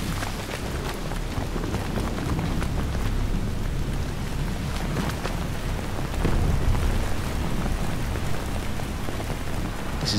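Footsteps splash quickly over wet ground.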